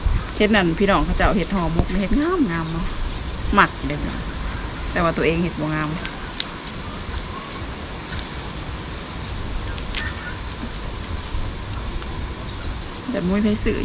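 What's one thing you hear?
Leaves rustle and crinkle as hands fold them.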